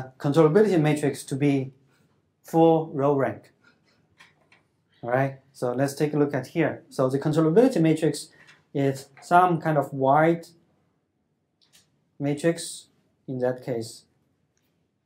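A man speaks calmly through a microphone, lecturing.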